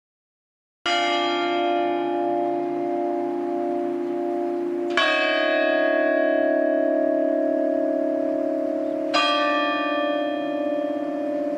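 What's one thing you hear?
A large church bell tolls slowly, each stroke ringing on and fading.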